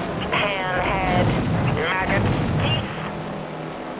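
A small explosion bursts.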